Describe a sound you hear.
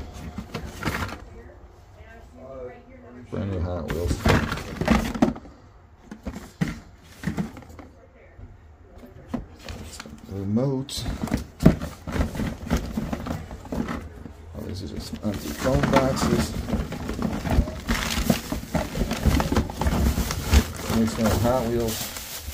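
Cardboard packages knock and scrape as they are handled.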